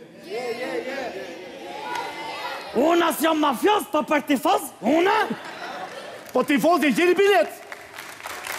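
A middle-aged man speaks loudly and animatedly through a microphone.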